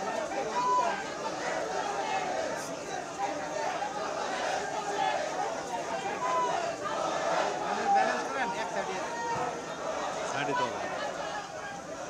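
A crowd of people murmurs and talks nearby.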